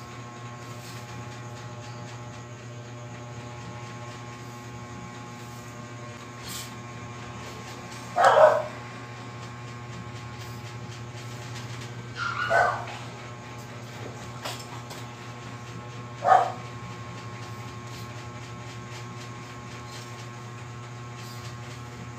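A plastic protractor slides and taps on paper.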